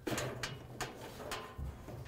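A motor pulley spins with a soft whirring.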